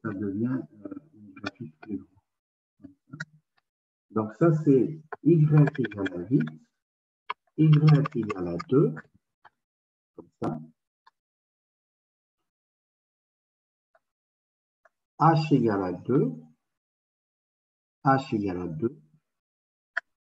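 A man explains calmly, heard through an online call.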